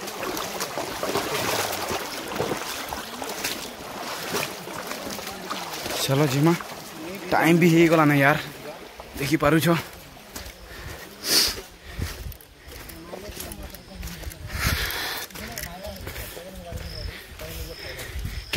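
Footsteps crunch on stony dirt ground outdoors.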